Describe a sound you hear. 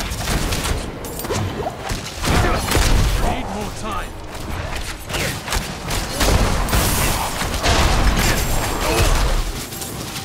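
Spell blasts crackle and boom again and again.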